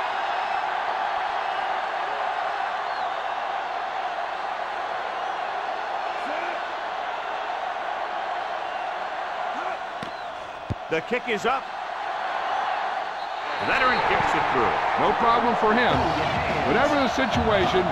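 A stadium crowd roars steadily throughout.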